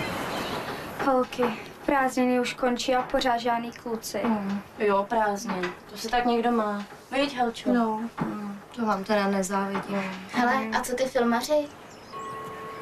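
Young women talk with animation in a room.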